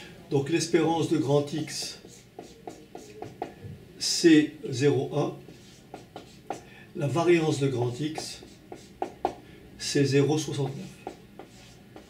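An elderly man speaks calmly and clearly in short phrases, close by.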